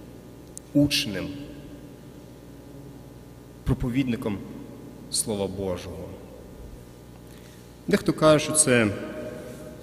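A man chants in short phrases in a large, echoing hall.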